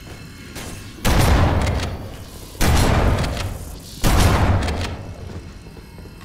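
Loud gunshots blast in short bursts.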